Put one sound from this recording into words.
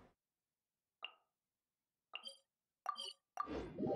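Soft menu chimes sound a few times.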